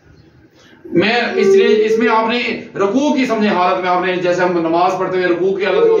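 An elderly man sings loudly and with feeling close by.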